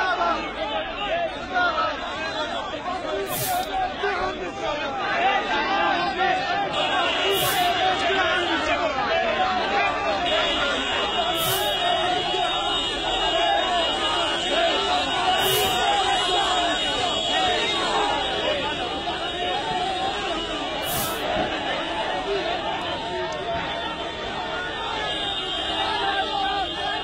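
A crowd of men chants and shouts loudly outdoors.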